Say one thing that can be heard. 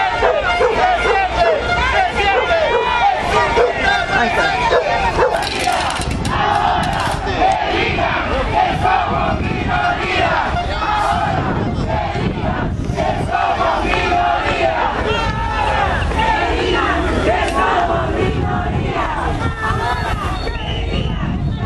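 A crowd of men and women chants and shouts loudly outdoors.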